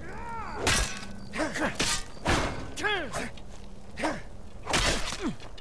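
Steel weapons clash and strike in quick, heavy blows.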